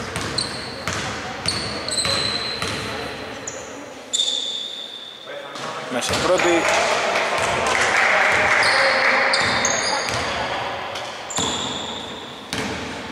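A basketball bounces on the floor with dull thuds.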